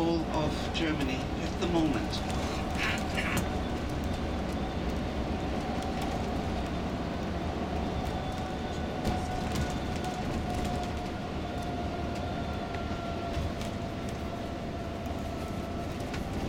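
Tyres roll steadily on a smooth road.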